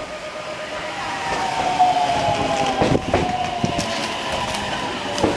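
Train brakes squeal as the train passes.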